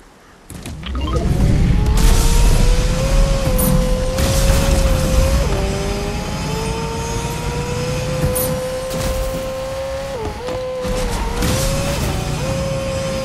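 A car engine hums steadily, its pitch rising and dipping as it speeds along.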